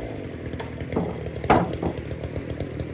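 Wood cracks sharply as a log splits.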